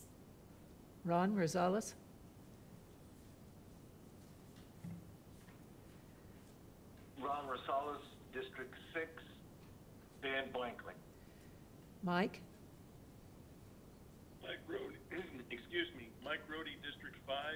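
An elderly woman speaks calmly into a microphone, in short phrases with pauses.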